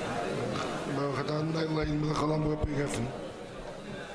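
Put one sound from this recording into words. A man briefly chants in a sung voice.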